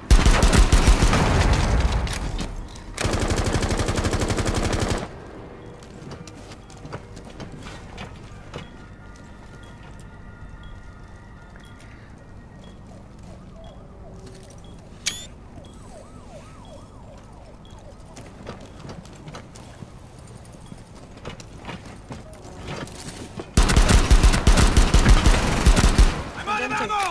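A pistol fires in rapid, loud bursts.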